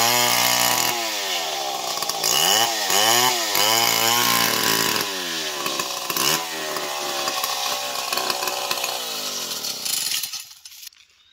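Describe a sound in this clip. A chainsaw engine roars loudly, its pitch rising and falling as it cuts through a log.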